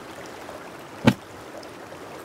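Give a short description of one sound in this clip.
A plastic case lid snaps open with a sharp clack.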